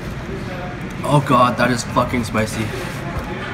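A teenage boy speaks briefly and casually, close by.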